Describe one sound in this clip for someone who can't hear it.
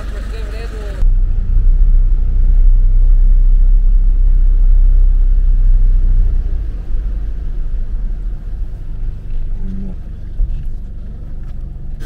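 A vehicle engine rumbles loudly.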